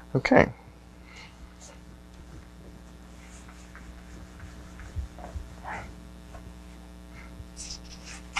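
An eraser rubs and squeaks across a whiteboard.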